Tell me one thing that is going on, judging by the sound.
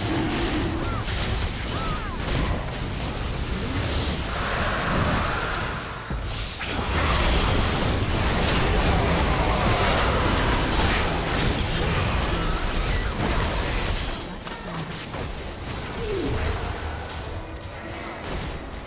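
Game spell effects burst and clash in a busy fight.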